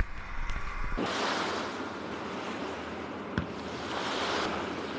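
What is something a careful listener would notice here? An armoured personnel carrier plunges into water with a heavy splash.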